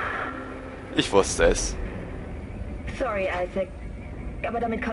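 A young woman speaks calmly over a radio.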